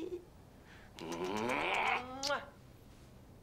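A man exclaims loudly over an online call.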